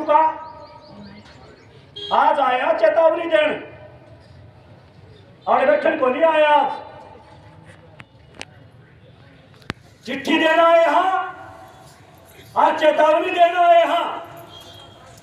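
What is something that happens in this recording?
A middle-aged man speaks loudly into a microphone in short bursts with pauses, outdoors.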